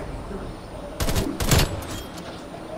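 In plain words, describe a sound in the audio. A rifle fires two sharp, loud shots.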